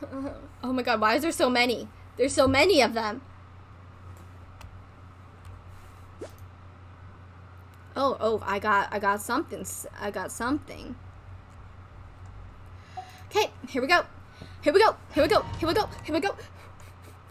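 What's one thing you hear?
A young woman talks casually and animatedly into a close microphone, in short bursts with pauses.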